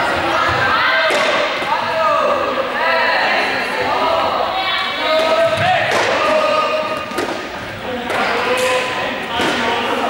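Sneakers squeak and thud on a hard floor as players run.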